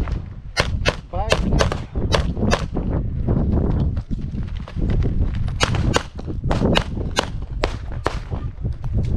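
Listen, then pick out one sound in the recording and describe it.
Pistol shots crack in quick bursts outdoors.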